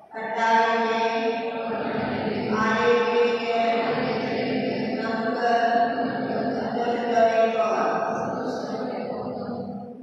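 A woman sings slowly into a microphone in a reverberant hall.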